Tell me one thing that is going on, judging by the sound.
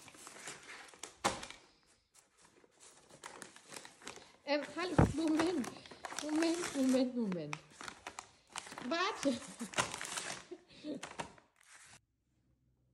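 A plastic packet crinkles and rustles in a hand.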